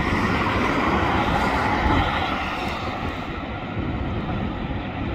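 A fire engine's engine idles with a low rumble.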